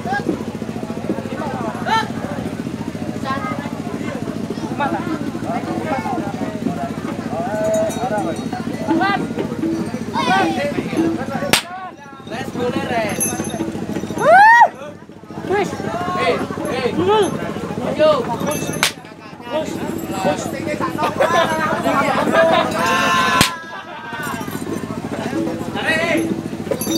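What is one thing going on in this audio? A crowd of men talk and call out nearby, outdoors.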